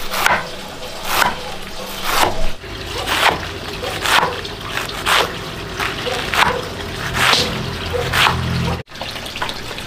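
A cleaver chops greens on a wooden board with steady, regular knocks.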